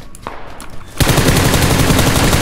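A rifle clatters as it is switched in the hands.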